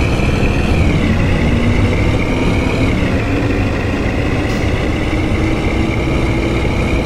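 A bus engine hums and whines steadily as the bus drives along.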